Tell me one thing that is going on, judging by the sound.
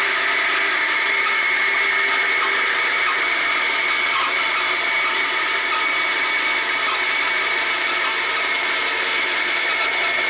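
A band saw whines steadily as it cuts through a block of wood.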